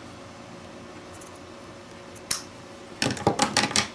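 Scissors snip through lace.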